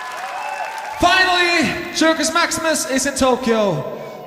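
A man sings into a microphone over loudspeakers in a large hall.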